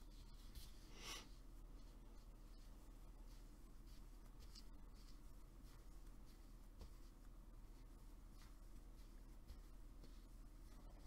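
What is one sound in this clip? Yarn rustles and slides softly as it is pulled through a crochet hook.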